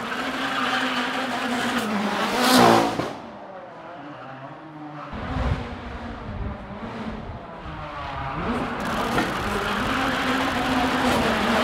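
A car drives past on a cobbled street.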